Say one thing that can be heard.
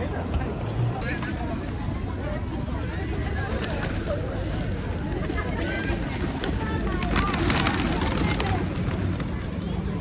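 Pigeons flap their wings in a flock close by.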